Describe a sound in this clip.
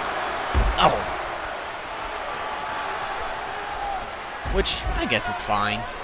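A body thuds heavily onto a wrestling mat.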